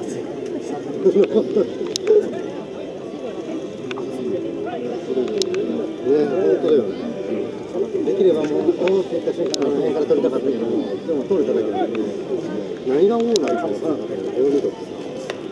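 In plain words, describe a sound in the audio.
Men shout and chatter nearby and across an open field.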